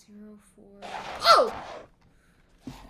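A young woman exclaims in surprise.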